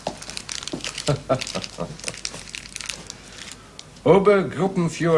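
A middle-aged man speaks in a firm voice close by.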